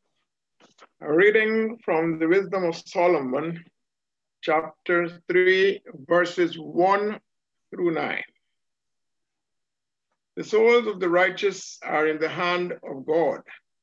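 A man reads aloud steadily over an online call.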